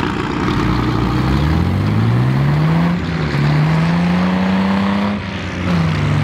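A vehicle engine revs up, rising in pitch.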